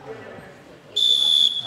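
A whistle blows a sharp, loud blast.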